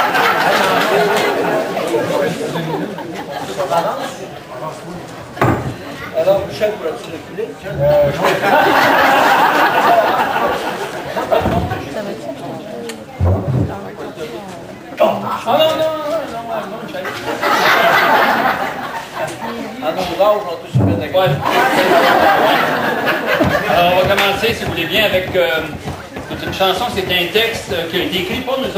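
Several men sing together.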